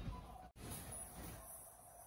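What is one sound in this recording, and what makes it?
A shopping cart rattles as it rolls.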